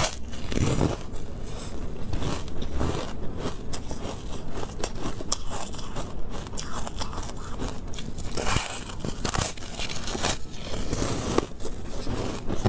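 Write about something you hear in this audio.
A woman chews and crunches food close to a microphone.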